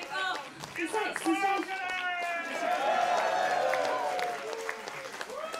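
A young man shouts and laughs excitedly.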